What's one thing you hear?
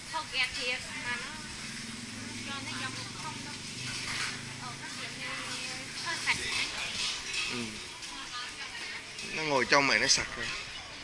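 Men and women chatter in the background at nearby tables.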